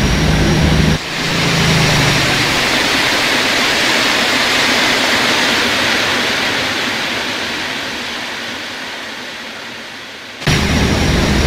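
A passing train rushes by with a loud whoosh that slowly fades.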